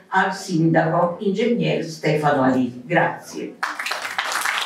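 A woman speaks into a microphone with animation, heard through a loudspeaker in a hall.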